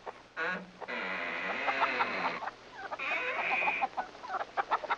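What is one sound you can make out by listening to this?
Hens cluck nearby.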